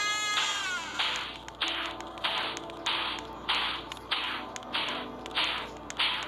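Footsteps tread steadily across a wooden floor.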